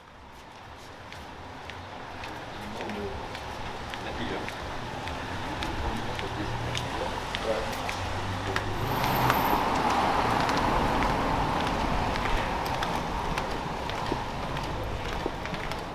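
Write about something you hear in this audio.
Footsteps tread on pavement outdoors.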